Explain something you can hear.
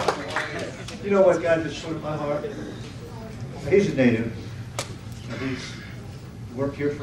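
An older man speaks calmly into a microphone over a loudspeaker.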